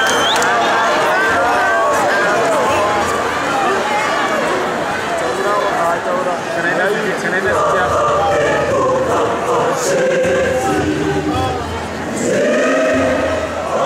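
A large choir of young men and women sings together loudly in a big echoing hall.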